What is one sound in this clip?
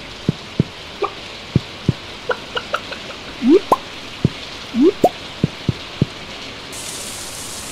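Hens cluck softly.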